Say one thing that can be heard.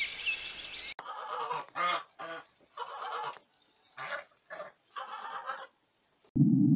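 Turkeys gobble loudly in short bursts.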